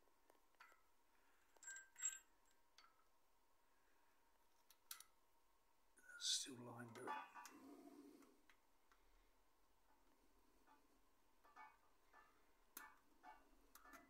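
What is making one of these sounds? A metal chain rattles and clinks against metal parts.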